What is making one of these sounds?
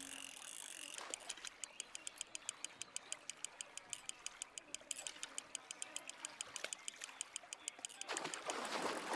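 A fishing reel clicks rapidly as line is wound in.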